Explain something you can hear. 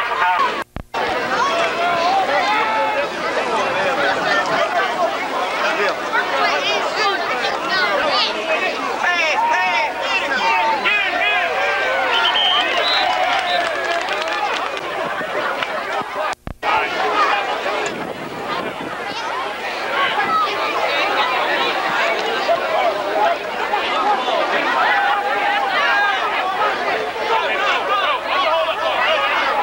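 A crowd of spectators talks and cheers loudly outdoors.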